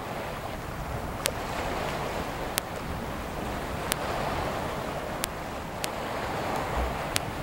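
Choppy water splashes and laps.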